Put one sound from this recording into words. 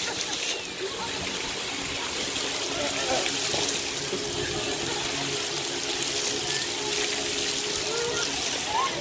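A water jet sprays with a steady hiss.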